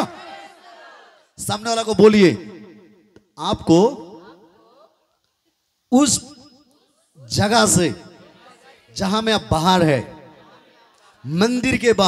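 A man speaks with fervour into a microphone, in short bursts with pauses, in a room with some echo.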